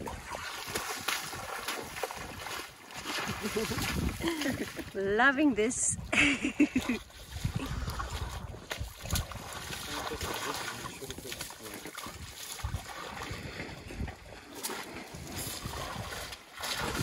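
A young elephant's feet squelch and splash through wet mud close by.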